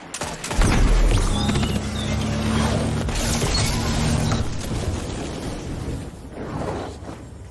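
Gunfire and explosions boom loudly in a game.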